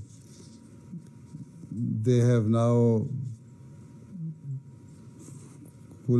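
Paper rustles in a man's hands.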